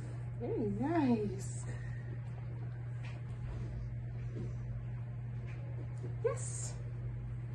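A puppy whines with short high yelps.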